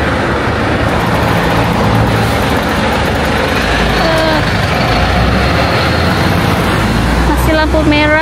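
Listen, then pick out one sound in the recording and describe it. A heavy truck engine rumbles as the truck drives past close by.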